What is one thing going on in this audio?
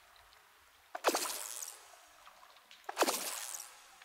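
Water splashes softly as a bobber bobs.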